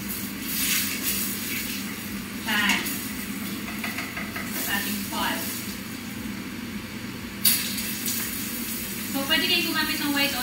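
A wooden spoon scrapes in a pan.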